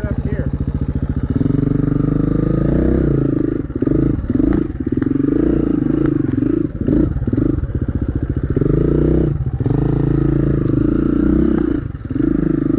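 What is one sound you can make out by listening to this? A dirt bike engine idles and revs in bursts close by.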